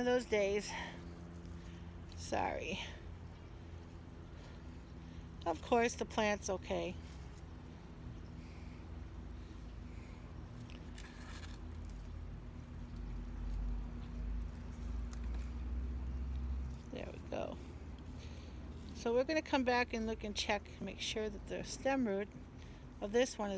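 Small pebbles crunch softly as fingers press them into a plant pot.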